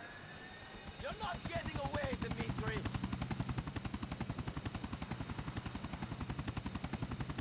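A helicopter's rotor thumps rapidly and loudly.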